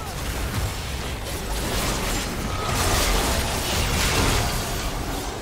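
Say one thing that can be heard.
Spell effects whoosh and crackle in a fast battle.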